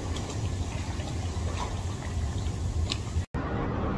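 Water splashes as a man moves his arms through it.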